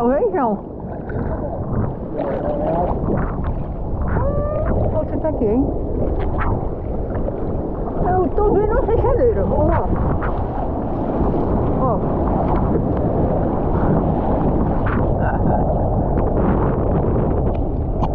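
Hands paddle through water with splashing strokes.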